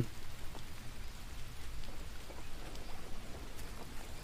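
Heavy rain pours down steadily on dense foliage.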